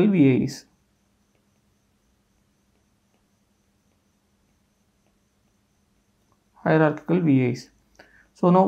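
A young man speaks calmly into a close microphone, in short phrases with pauses.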